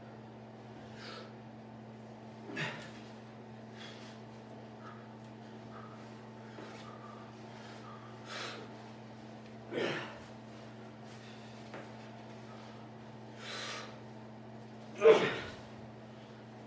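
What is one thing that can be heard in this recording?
Shoes stomp and scuff on a hard floor.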